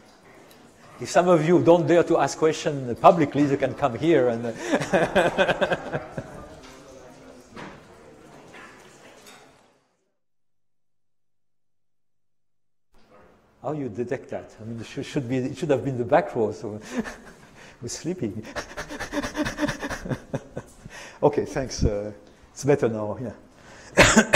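An elderly man lectures calmly into a microphone.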